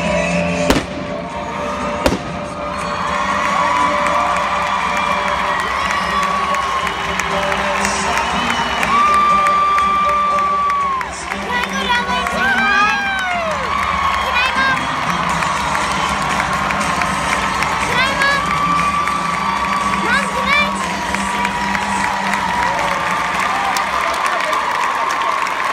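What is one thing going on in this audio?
A large crowd cheers and whoops in a big echoing arena.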